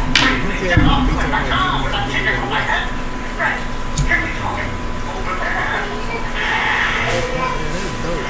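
A young man talks quietly close by.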